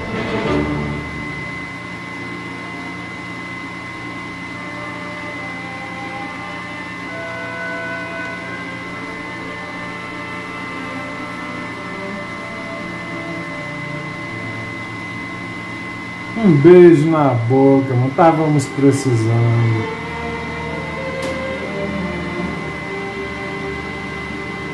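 Soft, gentle music plays steadily.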